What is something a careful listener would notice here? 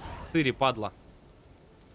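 A young man speaks briefly with animation into a close microphone.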